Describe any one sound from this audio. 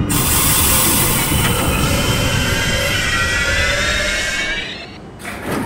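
Train brakes squeal with a falling whine as the train slows.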